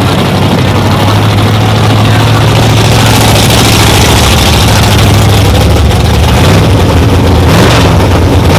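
A powerful race car engine idles with a deep, loud rumble.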